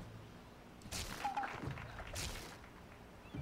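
A sword swishes through the air and slices a target.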